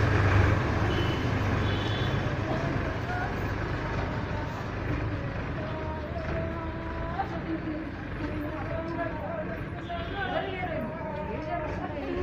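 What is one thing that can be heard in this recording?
A tractor engine rumbles as the tractor drives off.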